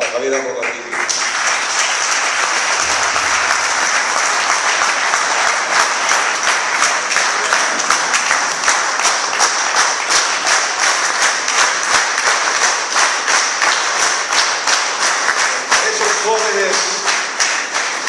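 A crowd applauds loudly and steadily.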